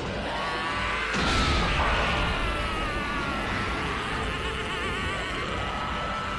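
A shimmering magical whoosh swells and bursts.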